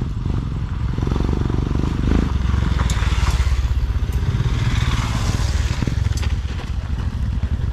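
A motorcycle passes close by.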